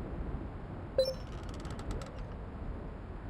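A short chime rings, followed by a quick run of soft clicks, as a game menu opens.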